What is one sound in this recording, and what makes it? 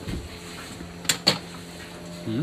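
Metal cabinet doors click and rattle open.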